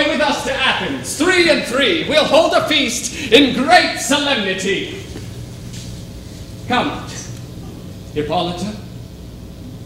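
A man speaks loudly on a stage, heard from across a hall.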